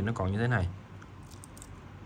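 A metal watch bracelet clinks softly as it is flexed.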